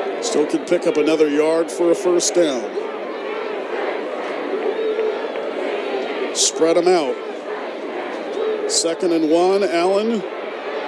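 A crowd murmurs and cheers in a large open stadium.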